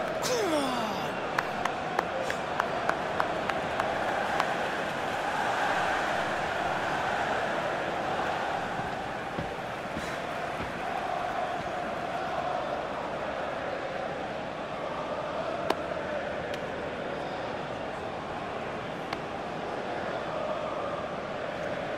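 A large crowd roars and cheers steadily in a big open stadium.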